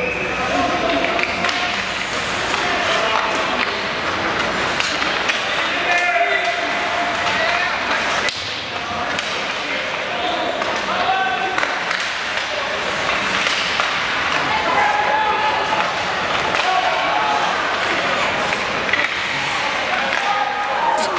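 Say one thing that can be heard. Hockey sticks clack against the puck.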